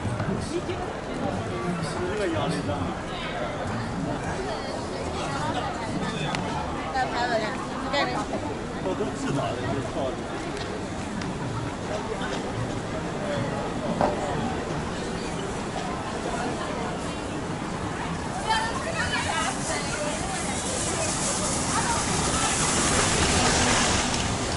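A crowd of people chatter and murmur all around outdoors.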